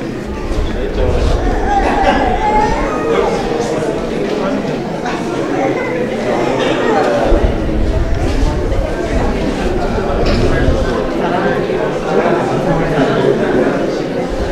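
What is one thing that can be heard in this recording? Several men talk at once in an echoing room.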